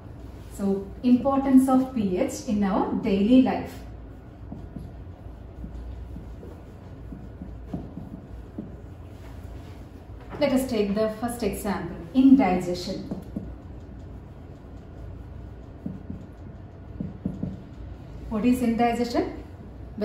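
A woman speaks calmly into a nearby microphone, in short bursts with pauses.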